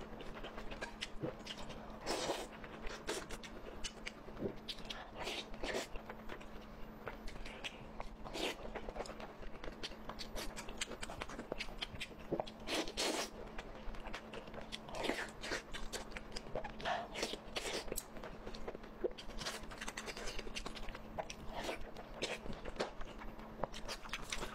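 A young woman chews and slurps food loudly close to a microphone.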